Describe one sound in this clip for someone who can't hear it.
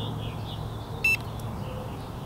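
An electronic meter gives a short high beep.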